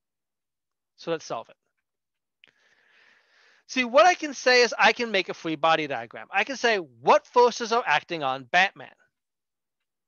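A man speaks calmly into a microphone, explaining.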